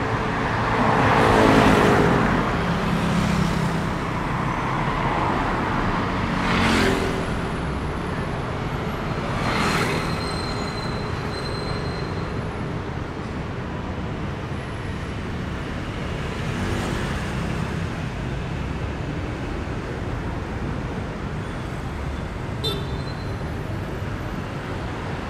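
Steady traffic rumbles in the background outdoors.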